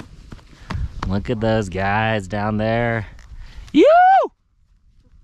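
A man calls out excitedly close by.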